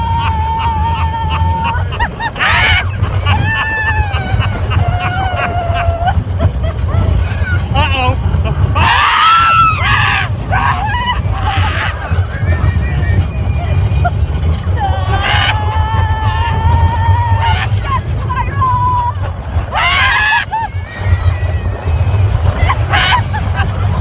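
A man laughs and screams loudly close by.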